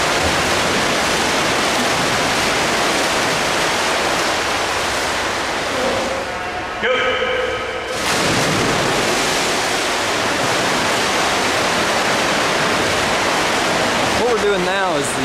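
Swimmers splash and churn the water, echoing through a large hall.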